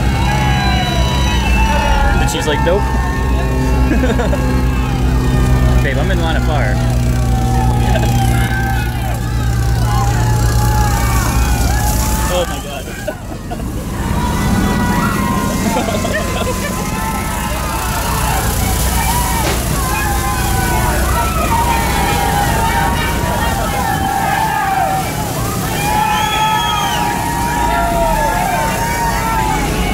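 A crowd of people chatter and cheer nearby, outdoors.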